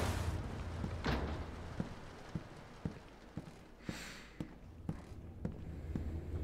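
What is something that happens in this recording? Footsteps knock on a wooden floor.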